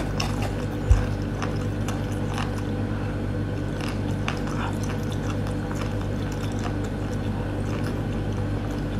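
Dry crumbs crackle and rustle between fingers close to a microphone.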